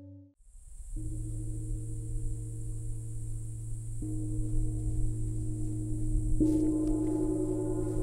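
A large gong is struck with a soft mallet and rings with a deep, wavering hum.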